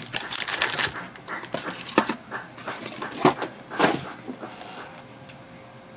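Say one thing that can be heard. Foil packs rustle and crinkle as hands move them.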